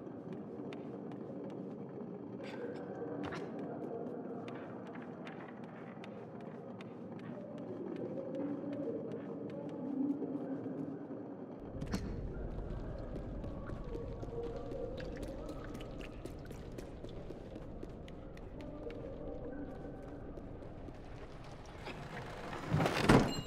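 Small footsteps patter on a wooden floor.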